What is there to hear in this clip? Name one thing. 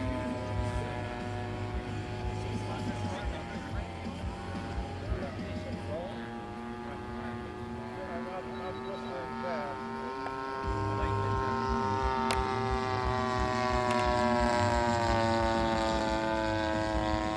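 A small model plane engine buzzes steadily overhead, its pitch slowly shifting as it flies.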